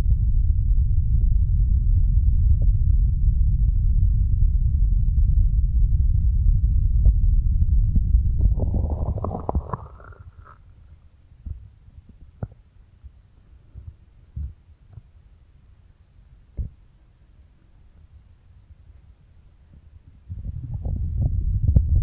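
Hands rub over a microphone with a deep muffled rumble.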